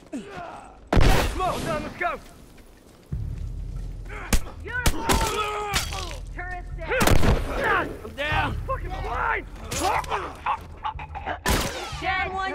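Gunshots ring out in sharp bursts.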